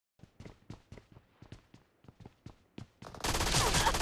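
Footsteps tap quickly on a metal floor.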